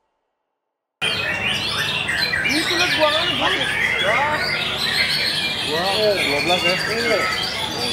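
A caged songbird sings loud, rapid, varied trills and whistles.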